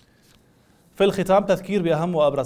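A young man speaks calmly and clearly into a microphone.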